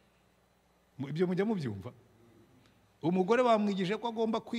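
A middle-aged man speaks with animation into a microphone, in pauses.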